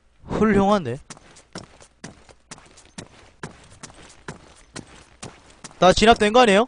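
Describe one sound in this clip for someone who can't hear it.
Footsteps thud quickly and evenly on dry ground.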